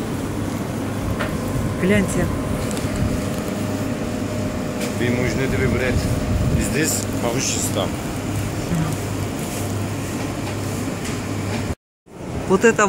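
People talk in a busy market.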